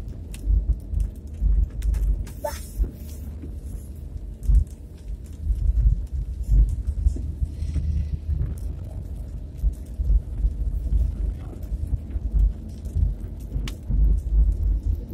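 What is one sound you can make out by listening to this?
Raindrops patter on a car windshield.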